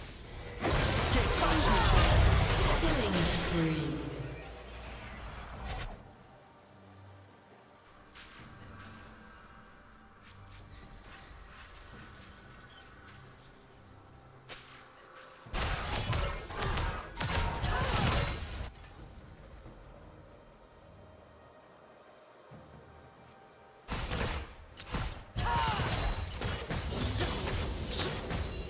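Fantasy battle effects whoosh, clang and crackle in bursts.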